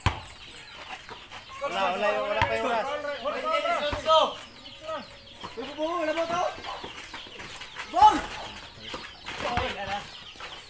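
A basketball bounces on hard ground.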